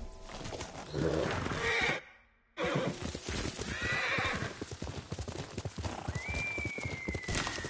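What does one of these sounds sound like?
Horse hooves thud rapidly on grass at a gallop.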